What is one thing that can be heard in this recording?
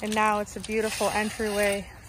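A shovel scrapes and tosses gravel.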